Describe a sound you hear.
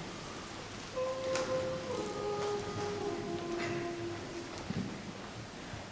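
A choir sings softly in a large echoing hall.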